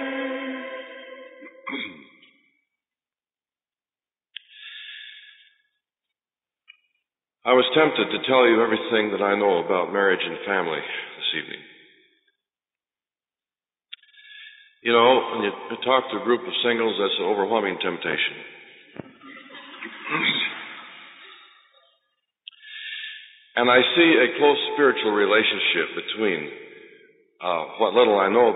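A man speaks calmly and steadily, as if giving a talk into a microphone, with short pauses.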